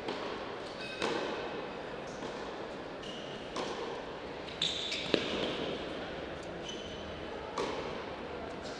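A tennis ball thuds on a court now and then.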